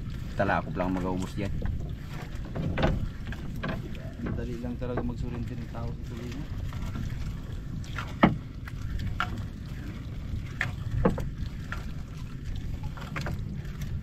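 A fishing net rustles and slaps against a boat.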